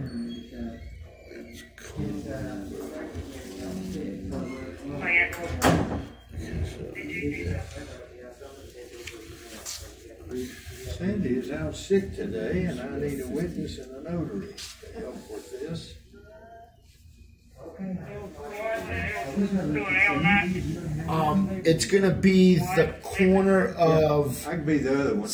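An elderly man speaks calmly, heard over an online call.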